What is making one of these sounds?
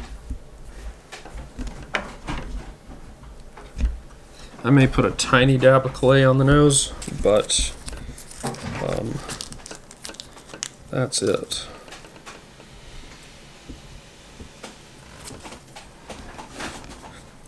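Small parts tap and rustle in a man's hands.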